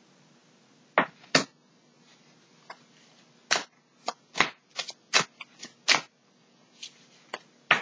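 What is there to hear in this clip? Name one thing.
Playing cards are shuffled with sharp riffling snaps.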